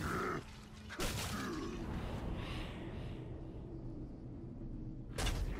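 A bowstring snaps as an arrow is shot.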